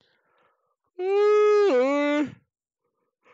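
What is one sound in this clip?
A man sings out a long, wavering note.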